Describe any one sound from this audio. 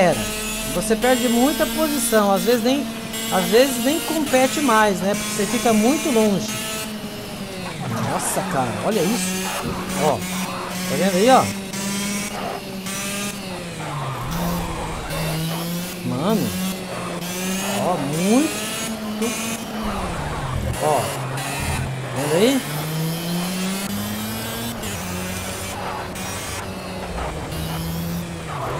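A racing car engine drones and revs steadily.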